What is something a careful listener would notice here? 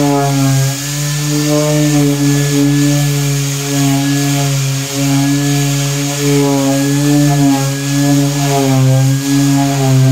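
An electric orbital sander whirs steadily against a hard surface, its pitch wavering as the pressure changes.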